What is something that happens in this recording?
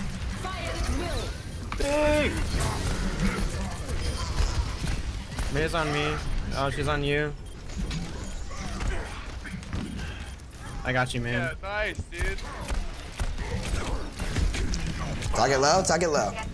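Gunshots fire rapidly in a video game.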